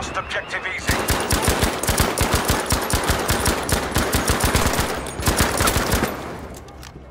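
Rapid gunfire rattles in short, fast bursts.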